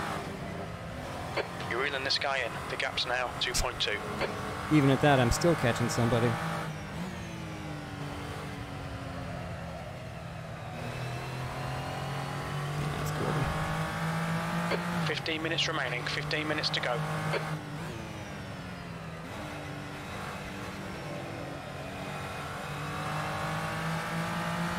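A race car engine revs up and down through gear changes.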